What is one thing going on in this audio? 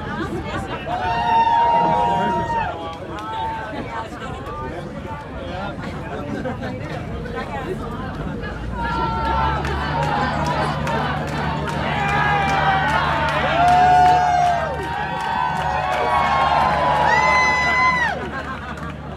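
Men on a stage shout and whoop loudly.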